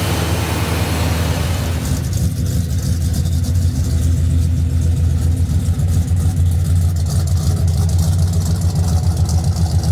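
A big car engine idles with a deep, throbbing rumble.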